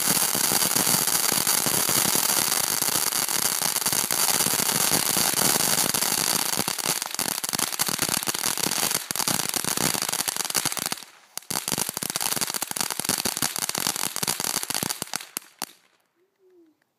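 Sparks from a firework crackle and pop sharply.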